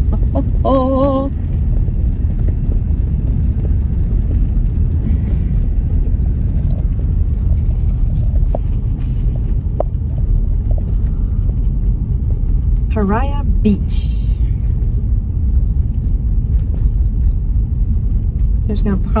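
A car engine hums and tyres rumble on the road.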